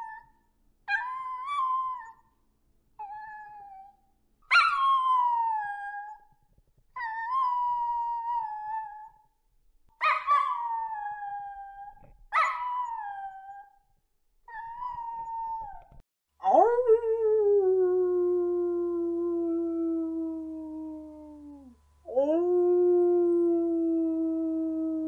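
Wolves howl in long, wavering calls.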